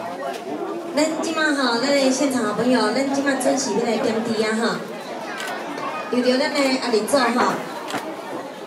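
A group of women chant together in unison, close by.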